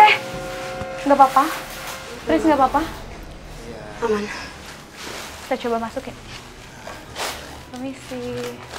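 Young women talk nervously, close by.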